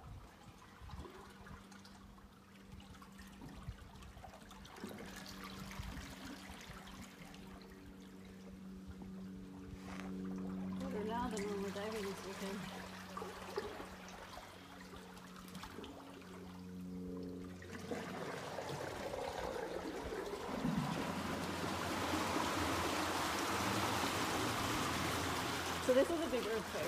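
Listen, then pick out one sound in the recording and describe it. Water rushes and splashes between rock walls, growing louder.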